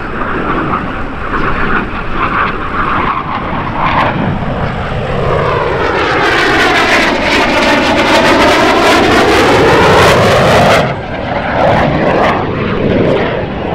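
A jet engine roars loudly as a fighter plane flies past.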